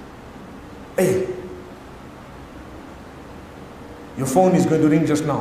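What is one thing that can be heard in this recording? A man speaks calmly and clearly into a microphone in an echoing hall.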